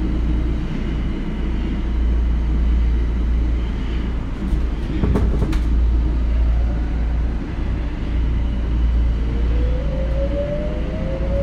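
A train car rumbles and rattles steadily as it runs along the tracks.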